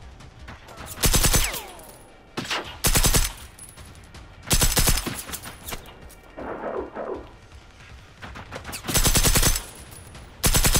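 A rifle fires in rapid bursts of shots.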